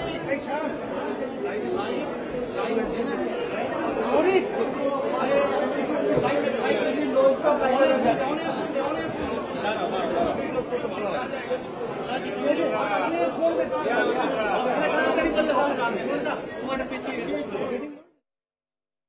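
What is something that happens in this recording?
A crowd of men chatter loudly all around, close by.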